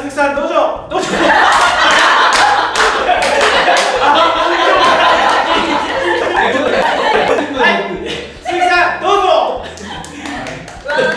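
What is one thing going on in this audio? A young woman claps her hands.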